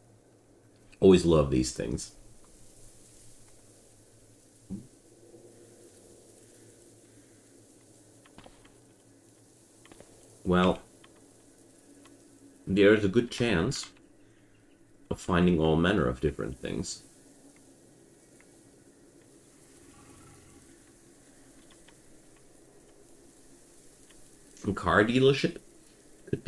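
A young man talks calmly and close to a microphone, in short bursts.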